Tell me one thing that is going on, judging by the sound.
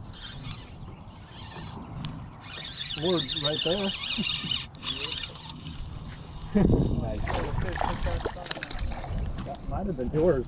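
A spinning reel whirs as its handle is cranked.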